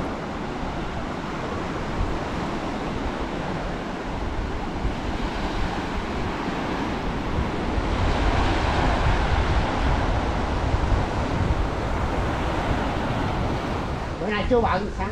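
Waves break and wash up on a beach.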